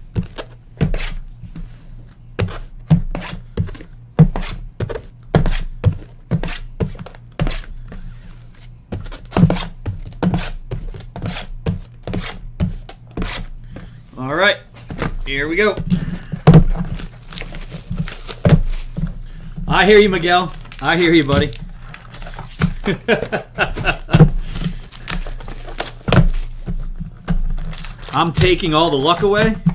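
Plastic wrap crinkles and rustles as a box is unwrapped.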